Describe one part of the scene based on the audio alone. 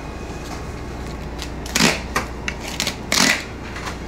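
A knife slices through raw meat.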